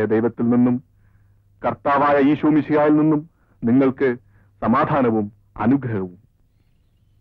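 A man speaks with animation to a crowd outdoors.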